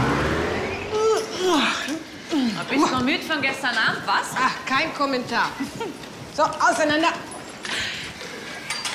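A young woman sings loudly close by.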